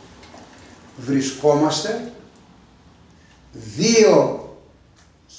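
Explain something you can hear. An elderly man speaks with animation close by, in short bursts.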